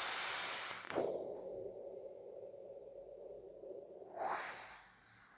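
A man exhales a long, soft breath.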